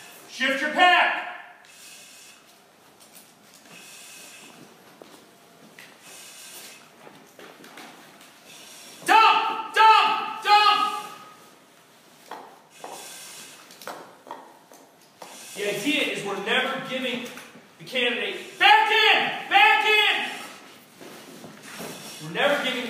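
A man speaks calmly nearby, giving instructions.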